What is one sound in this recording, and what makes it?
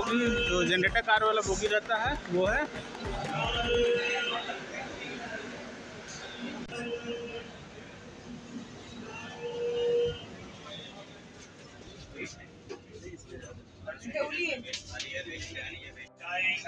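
Men talk nearby in a busy crowd.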